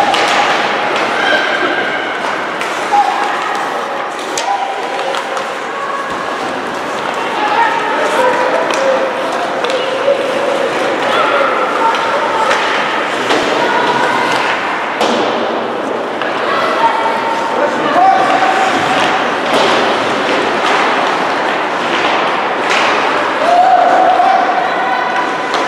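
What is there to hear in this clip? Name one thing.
Spectators shout and cheer from the stands.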